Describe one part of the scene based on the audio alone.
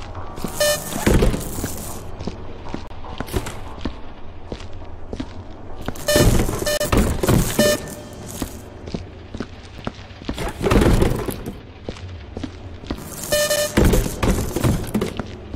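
Cardboard boxes thud and tumble onto a hard floor.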